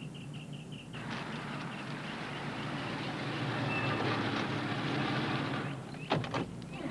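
A car engine approaches and idles nearby.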